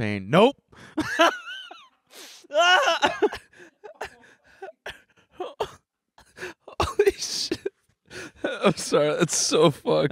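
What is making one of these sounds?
A young man talks and laughs into a microphone with animation.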